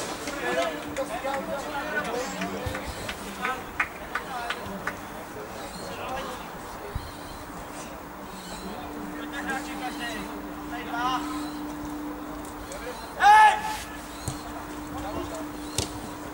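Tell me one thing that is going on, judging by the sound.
Football players shout and call out to each other across an open pitch.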